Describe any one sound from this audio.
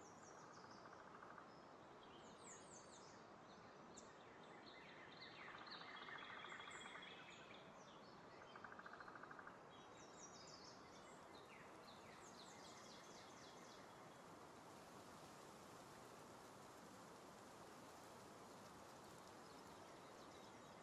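Wind rushes steadily past a gliding winged creature.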